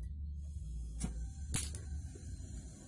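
A gas torch igniter clicks.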